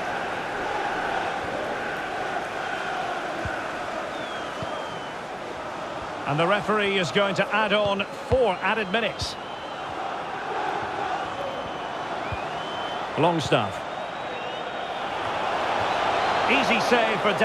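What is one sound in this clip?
A large stadium crowd murmurs and roars steadily, swelling toward the end.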